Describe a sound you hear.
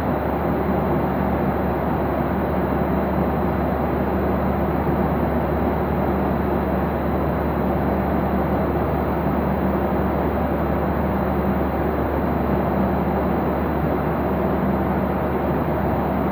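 A jet airliner's engines roar steadily in the cabin.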